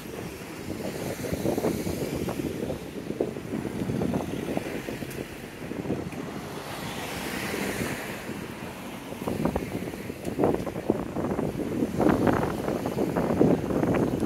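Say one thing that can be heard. Cars drive past on a street.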